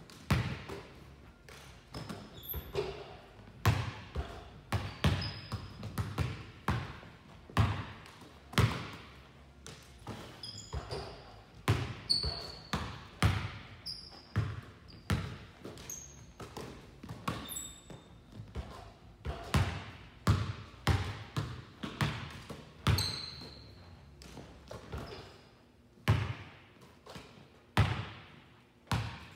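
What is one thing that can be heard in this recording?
Basketballs bounce on a hard floor with sharp, echoing thuds.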